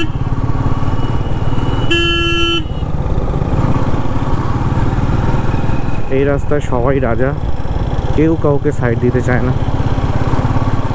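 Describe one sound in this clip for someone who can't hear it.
A motorcycle engine thumps steadily close by.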